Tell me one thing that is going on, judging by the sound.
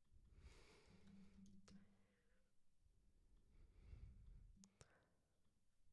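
A young woman speaks calmly and quietly into a close microphone.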